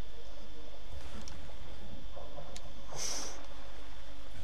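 A body plunges into water with a loud splash.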